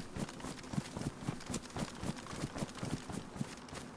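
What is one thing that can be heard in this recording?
Quick footsteps thud and swish through tall grass.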